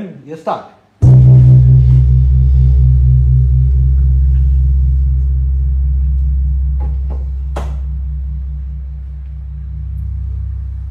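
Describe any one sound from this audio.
A large gong is struck once and booms with a long, slowly fading hum.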